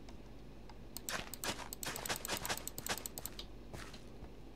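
Dirt crunches in a quick run of soft taps as ground is dug.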